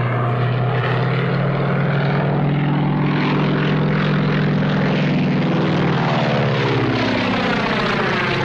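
A propeller plane's engine drones loudly, and its pitch slowly drops.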